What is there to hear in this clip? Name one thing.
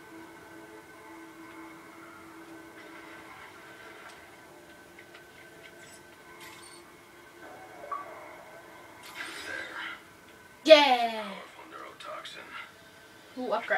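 Electronic game music and sound effects play through a television speaker.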